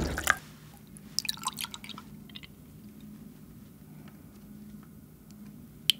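Milk pours from a carton into a glass, gurgling and splashing.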